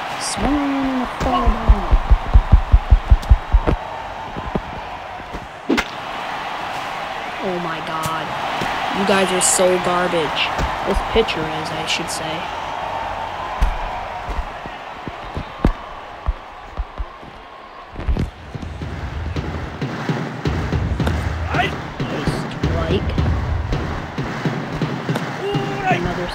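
A large crowd cheers and murmurs in a stadium.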